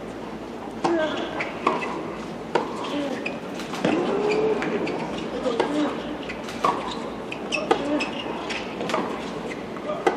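Tennis shoes squeak on a hard court.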